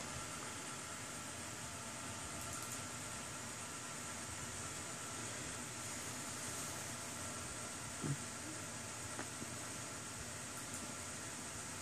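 Cooling fans in a desktop computer whir.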